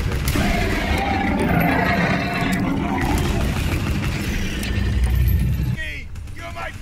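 Gunshots fire rapidly.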